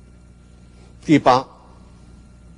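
An elderly man speaks briefly and calmly into a microphone.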